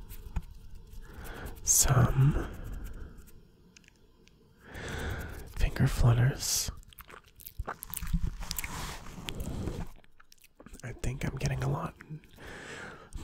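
A man whispers softly and closely into a microphone.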